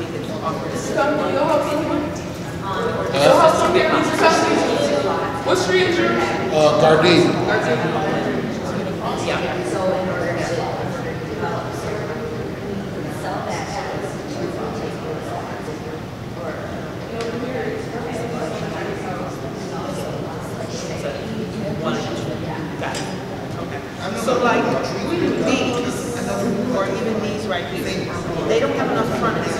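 Several adults talk with one another nearby in a large echoing room.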